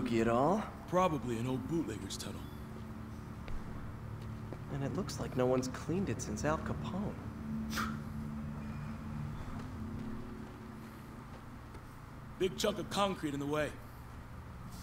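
A man answers calmly.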